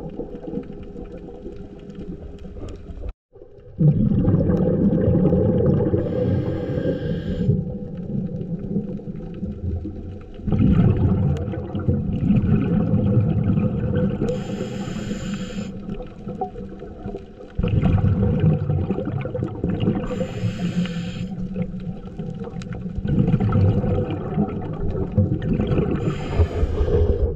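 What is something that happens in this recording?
A scuba diver breathes in and out through a regulator.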